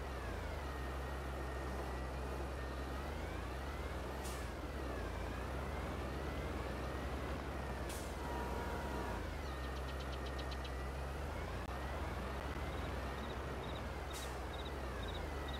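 A tractor engine rumbles steadily as it drives.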